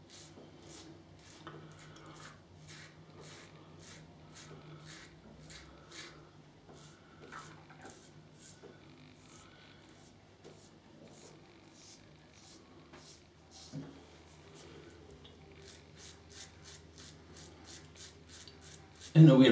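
A razor scrapes through stubble in short, quick strokes.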